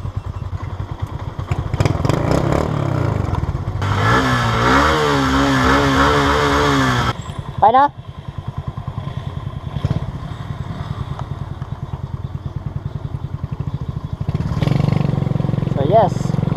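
A motorcycle engine idles with a steady putter close by.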